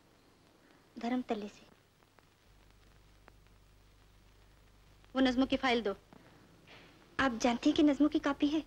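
Another young woman answers softly and then speaks with warmth, close by.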